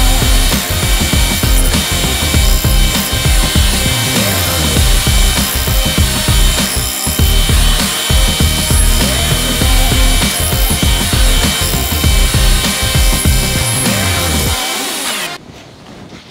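A band saw grinds through a steel plate.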